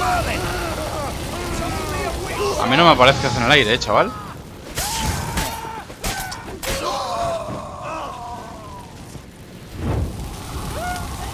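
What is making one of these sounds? Fire whooshes and roars in short bursts.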